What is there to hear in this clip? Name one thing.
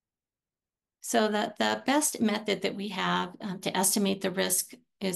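A woman speaks calmly through an online call microphone.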